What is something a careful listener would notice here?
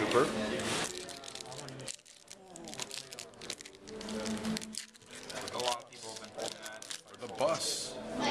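A foil pack crinkles in hands.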